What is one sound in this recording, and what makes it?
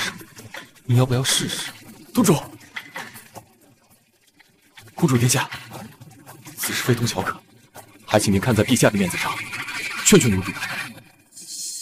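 A young man speaks earnestly and close by.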